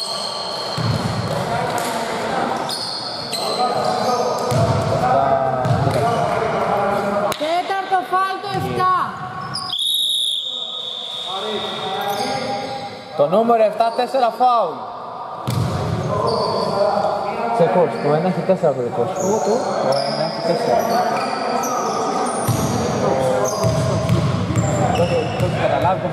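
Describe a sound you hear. Men call out to each other in a large echoing hall.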